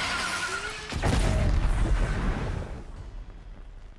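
A loud blast bursts and rumbles.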